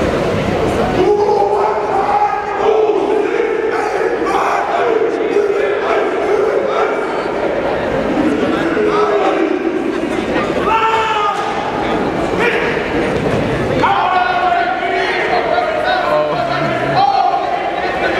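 A group of young men chant and sing together loudly in a large echoing hall.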